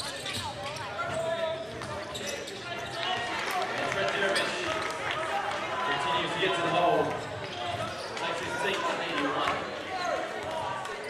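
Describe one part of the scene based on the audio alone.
Sneakers squeak sharply on a wooden court in an echoing hall.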